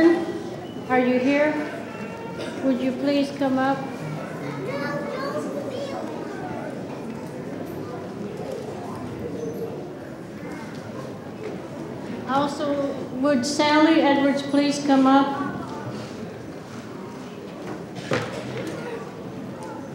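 An elderly woman speaks slowly into a microphone in a large echoing hall.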